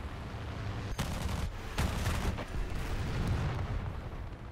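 Bursts of gunfire rattle.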